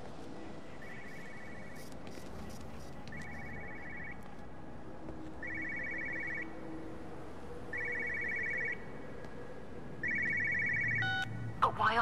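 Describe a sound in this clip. A telephone rings in repeated bursts.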